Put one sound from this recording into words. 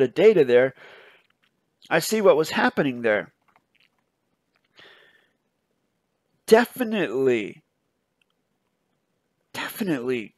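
A man speaks calmly into a microphone in short bursts with pauses, heard over an online call.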